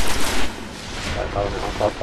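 An energy blast bursts with a loud crackle.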